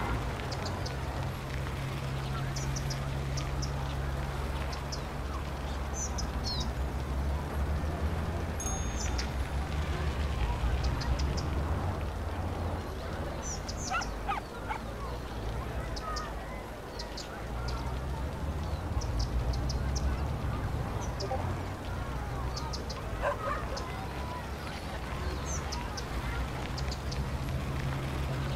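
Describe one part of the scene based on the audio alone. City traffic hums steadily.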